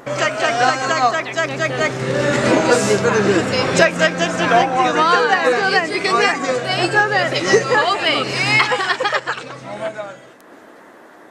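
A lively group of young men and women laugh and shout close by.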